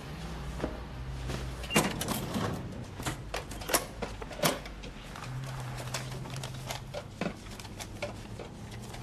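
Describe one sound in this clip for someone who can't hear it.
A cash register drawer slides open with a clatter.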